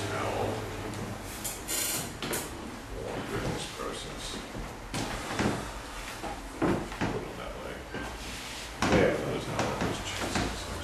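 A man speaks calmly and clearly nearby.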